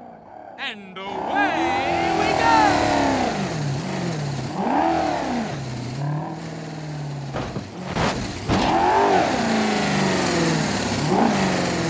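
A car engine revs up and down repeatedly.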